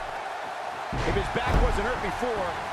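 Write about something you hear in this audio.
A body slams heavily onto a wrestling mat with a loud thud.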